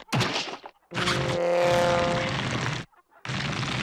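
A cartoon bird squawks loudly.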